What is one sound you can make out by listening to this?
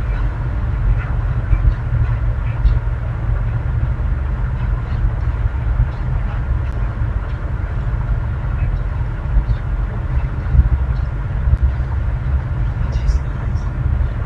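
A deep, steady hum drones.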